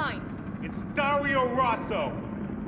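An elderly man answers angrily, muffled behind a door.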